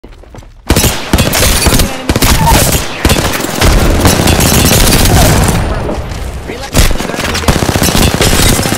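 Rapid gunfire bursts loudly and repeatedly.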